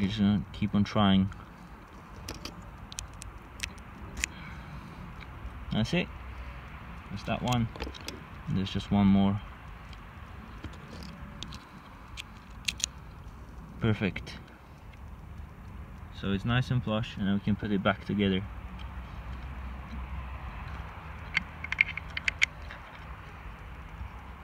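Small metal lock parts click and tap together.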